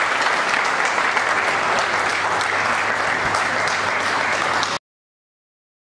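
A large crowd applauds loudly in an echoing hall.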